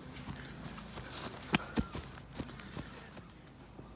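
A boy's footsteps thud softly on grass as he runs.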